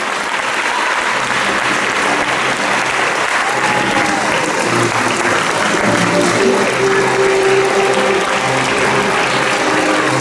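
A piano plays a tune.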